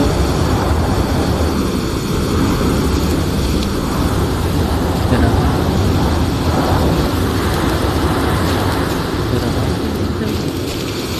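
A young man talks steadily into a close microphone.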